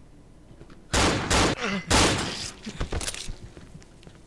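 A blade strikes flesh with a wet thud.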